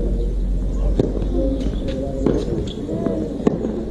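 A racket strikes a tennis ball with a sharp pop.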